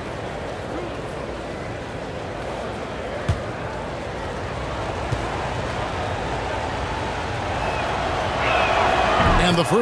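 A large crowd murmurs steadily in an echoing arena, growing louder toward the end.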